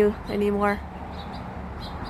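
Crows caw repeatedly overhead.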